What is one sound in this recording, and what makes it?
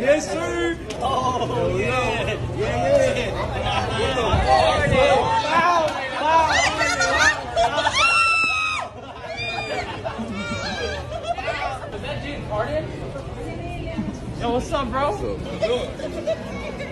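A crowd of people talks and cheers excitedly.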